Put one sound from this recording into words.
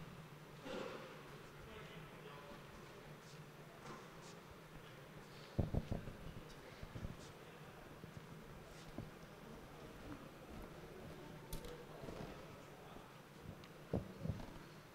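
A man speaks calmly over a microphone in a large echoing hall.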